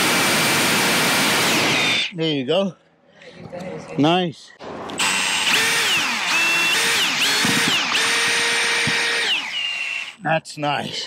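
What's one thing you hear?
A cordless drill whirs, speeding up and slowing down as it drives into a surface.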